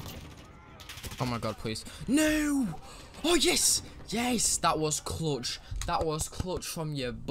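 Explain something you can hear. A young man shouts and talks excitedly into a microphone.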